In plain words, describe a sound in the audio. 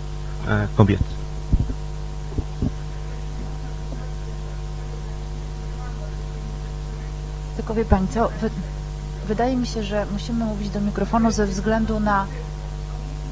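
A man speaks calmly into a microphone over loudspeakers.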